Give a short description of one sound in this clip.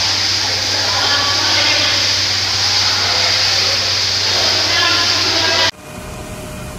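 Water sprays hard from a hose onto a floor.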